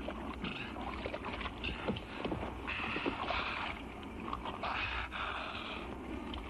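Choppy water splashes and laps close by.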